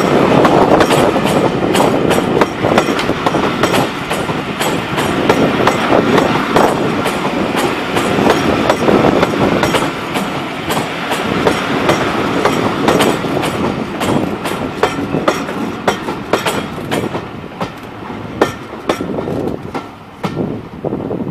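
Train wheels click rapidly over rail joints.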